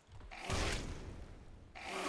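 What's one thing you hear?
A fireball bursts with a whoosh.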